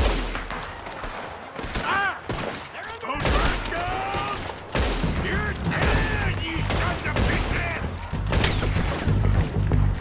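A man shouts angrily from a distance.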